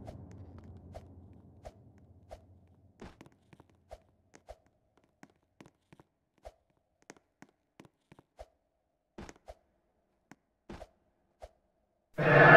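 Soft footsteps patter across a floor.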